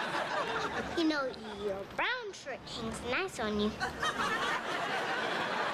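A young girl speaks in a high, animated voice.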